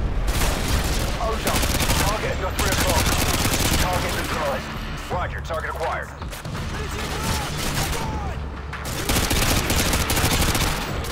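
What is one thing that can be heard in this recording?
Rapid bursts of automatic gunfire ring out close by.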